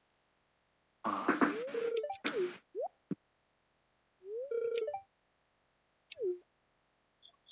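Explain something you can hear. Short chirping game sounds play as text boxes open and close.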